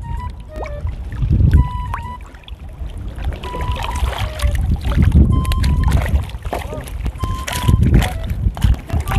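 Water splashes and sloshes as a man wades close by.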